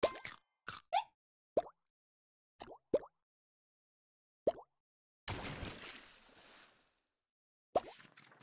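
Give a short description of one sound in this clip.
Short bubbly pops sound from a mobile game.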